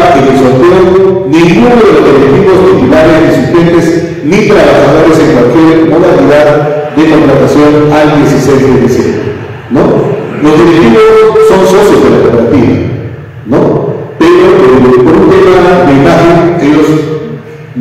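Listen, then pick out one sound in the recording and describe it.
A man speaks steadily into a microphone, with short pauses.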